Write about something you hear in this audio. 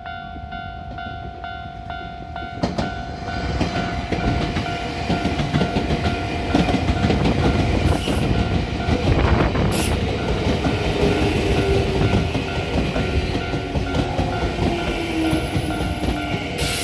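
A railway crossing bell rings in a fast, steady rhythm.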